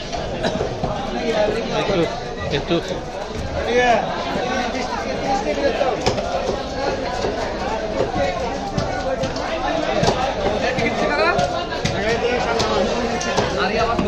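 A knife scrapes and knocks against a large fish.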